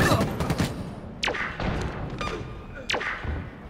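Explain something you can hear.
A heavy metal robot crashes to the ground with loud clanking thuds.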